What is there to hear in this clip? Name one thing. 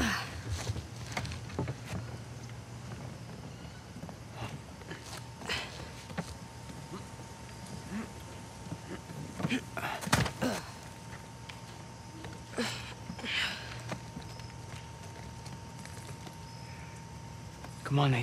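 Footsteps tap and scrape across roof tiles.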